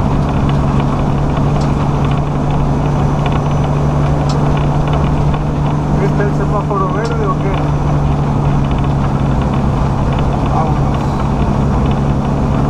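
Tyres rumble steadily over the road.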